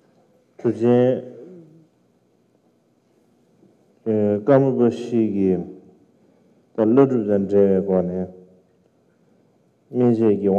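A man speaks slowly and calmly into a microphone, in phrases with pauses between them.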